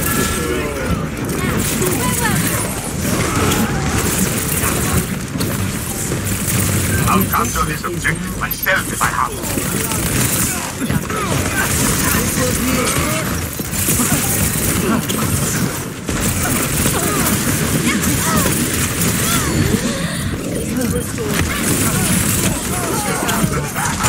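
Game sound effects whoosh and zap as a player blinks around.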